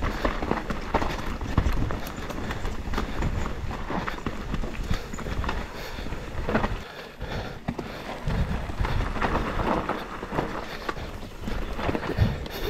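A mountain bike's frame and chain clatter over bumps.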